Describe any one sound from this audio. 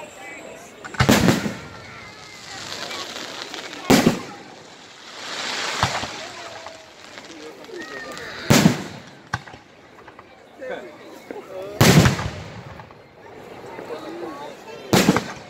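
Fireworks explode with loud booms outdoors.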